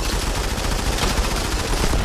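A rifle fires a loud shot.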